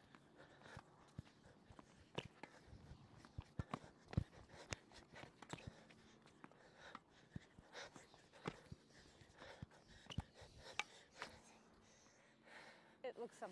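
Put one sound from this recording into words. Tennis balls are struck with rackets, back and forth.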